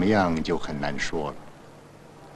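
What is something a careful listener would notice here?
A young man speaks quietly and sadly.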